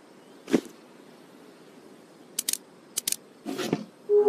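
Short game clicks and taps sound as pieces are chosen.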